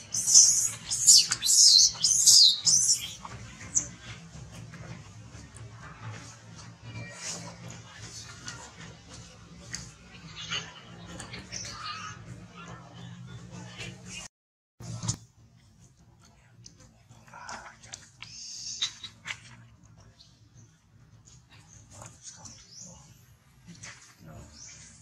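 Dry leaves rustle as monkeys move about.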